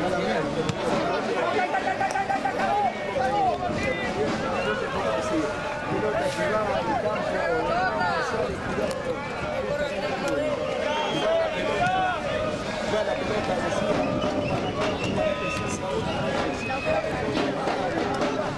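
A crowd of spectators murmurs and shouts in the open air.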